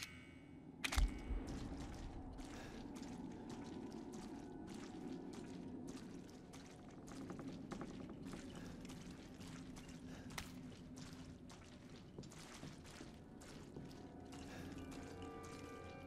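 Footsteps crunch slowly over debris on the floor.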